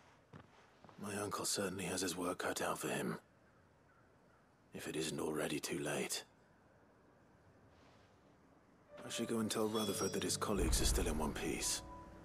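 A young man speaks calmly and thoughtfully, close by.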